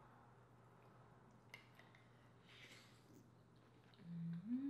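A young woman chews food with wet, crunchy mouth sounds close to a microphone.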